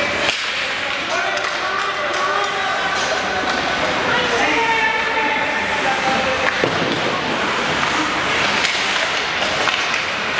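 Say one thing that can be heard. Skates scrape and hiss across the ice in a large echoing arena.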